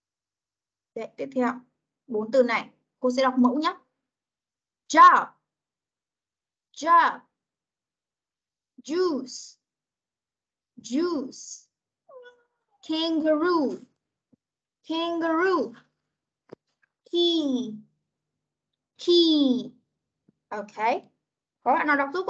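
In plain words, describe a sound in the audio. A young woman says words slowly and clearly over an online call.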